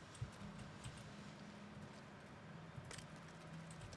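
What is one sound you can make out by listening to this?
A menu clicks softly.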